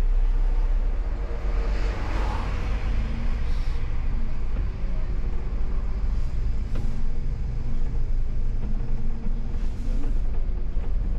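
A bus engine rumbles louder as the bus pulls away and speeds up.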